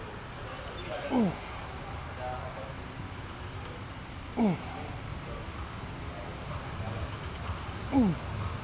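A man grunts with strain, his voice falling in pitch.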